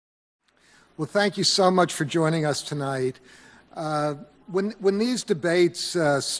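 A man speaks calmly into a microphone, heard over loudspeakers in a hall.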